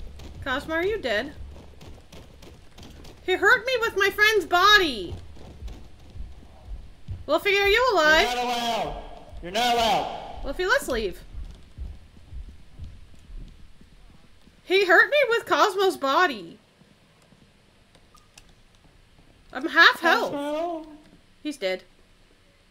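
A young woman talks with animation close to a microphone, in bursts with pauses.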